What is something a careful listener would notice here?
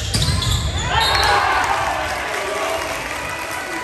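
A crowd of young men cheers loudly.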